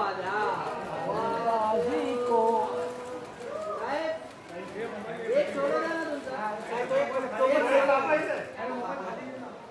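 A young woman speaks and laughs close by.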